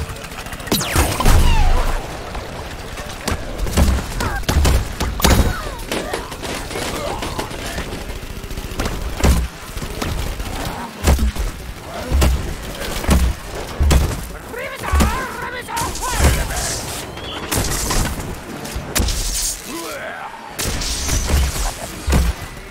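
Cartoonish game blasters fire in quick bursts.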